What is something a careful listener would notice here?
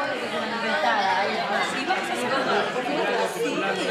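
A young woman speaks cheerfully up close.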